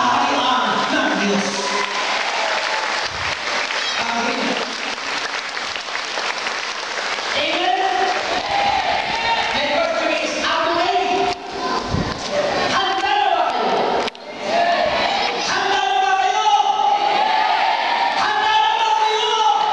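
A man sings into a microphone, heard through loudspeakers.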